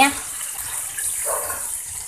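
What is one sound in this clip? Water pours into a pan.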